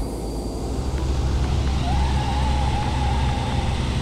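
Tyres squeal on the road.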